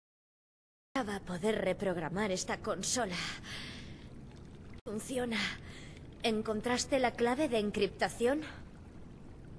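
A young woman speaks calmly, close up.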